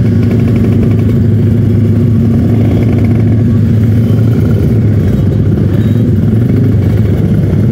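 Motorcycles ride past nearby.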